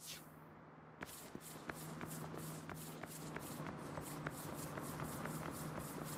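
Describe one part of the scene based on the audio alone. Quick footsteps run across hard pavement.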